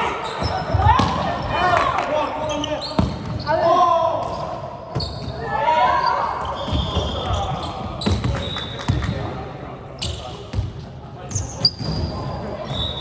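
A volleyball is struck with the hands.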